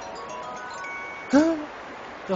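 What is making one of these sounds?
A video game plays short chiming tones.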